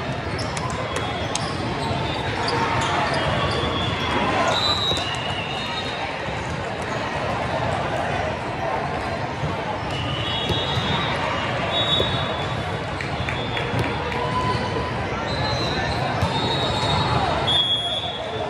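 A large echoing hall fills with the chatter of a crowd.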